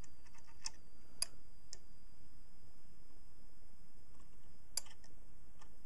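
A metal blade taps and scrapes against a small piece of brass.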